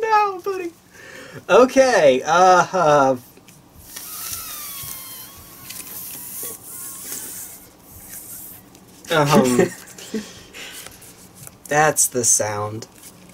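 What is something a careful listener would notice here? Playing cards rustle and flick as they are shuffled by hand.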